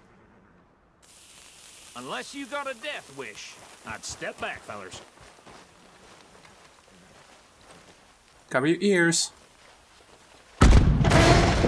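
A lit fuse hisses and sputters.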